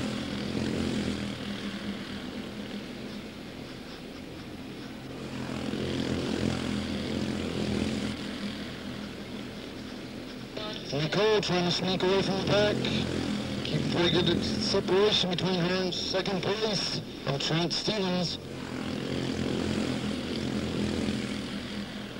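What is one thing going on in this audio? Small racing car engines buzz and roar as the cars race past.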